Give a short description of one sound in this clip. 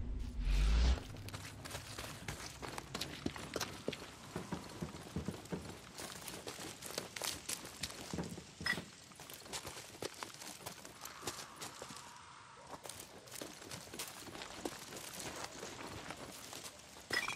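Footsteps crunch on gravel and dry ground.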